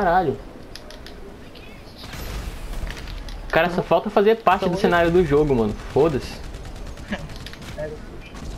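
Gunshots fire in quick bursts.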